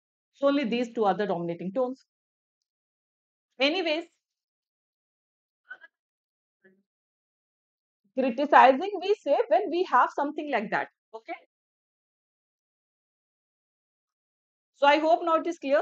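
A young woman speaks calmly into a close microphone, in bursts with pauses.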